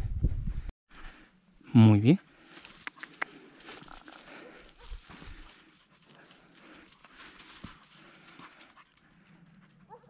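A dog rustles through dry grass.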